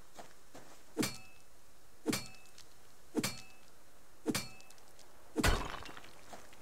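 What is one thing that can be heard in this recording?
A pickaxe strikes rock with sharp, ringing blows, several times.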